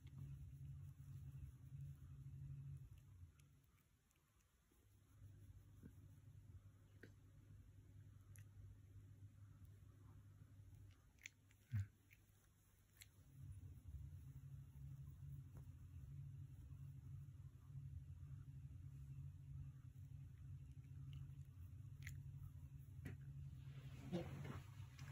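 A cat purrs softly and steadily up close.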